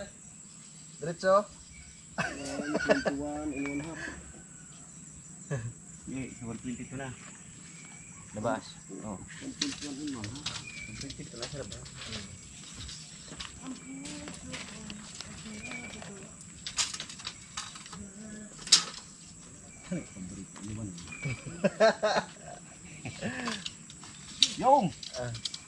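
Men talk to each other outdoors at close range.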